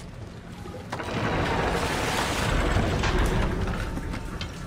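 A heavy metal gate grinds as it is pushed open.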